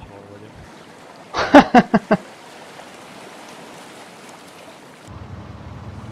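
Water laps and splashes around a swimmer.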